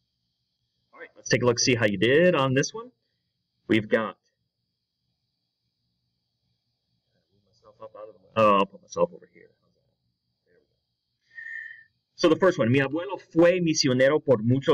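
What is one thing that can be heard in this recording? A man speaks calmly and clearly, close to a microphone, in short bursts with pauses.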